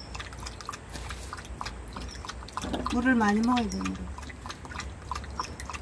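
A dog laps water quickly with wet clicking sounds.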